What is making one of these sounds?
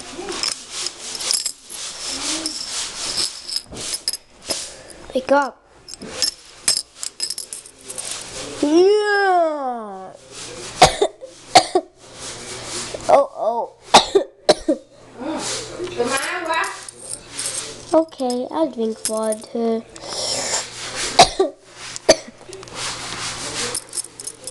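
Wooden beads clack and rattle on a hard surface.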